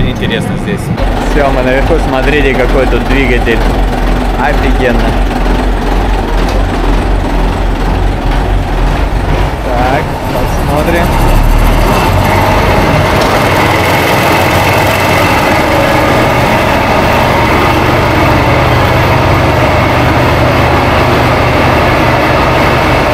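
A small rail car rumbles and rattles along a track.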